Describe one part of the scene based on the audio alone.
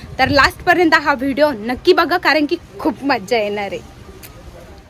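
A young woman speaks loudly and with animation close by.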